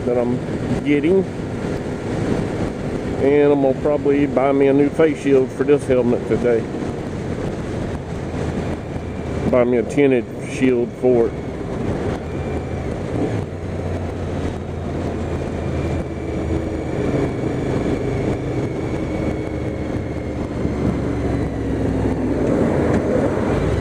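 Wind rushes past a moving motorcycle.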